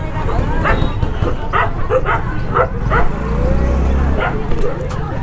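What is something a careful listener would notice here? A motor scooter engine hums as it rides past close by.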